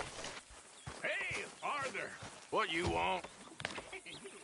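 A man calls out a greeting from a short distance.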